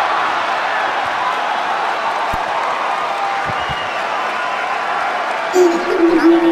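A large crowd cheers and applauds loudly in a big hall.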